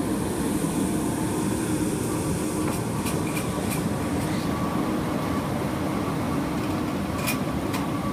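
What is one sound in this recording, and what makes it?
Firefighters drag a heavy hose along concrete.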